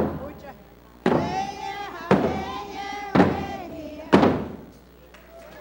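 A group of men and women sings a chant loudly.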